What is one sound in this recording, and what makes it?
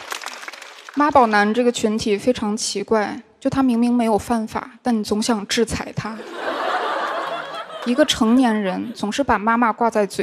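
A young woman speaks into a microphone with a lively, joking manner.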